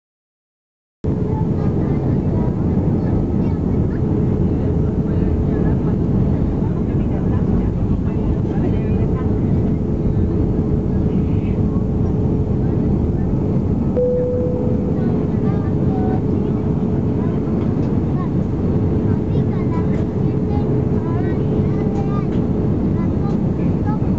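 Jet engines roar steadily with a low, loud rumble.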